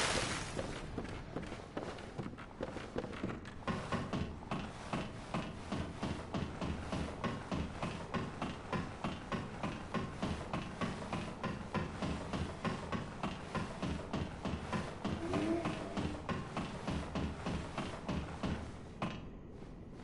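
Footsteps clank rhythmically on metal ladder rungs.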